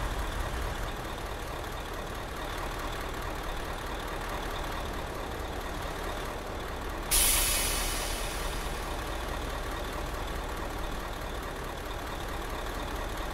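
A bus engine idles with a low steady rumble.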